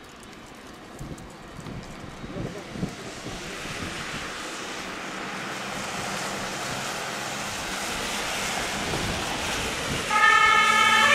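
Tyres of an ambulance hiss on a wet road as the ambulance approaches and passes.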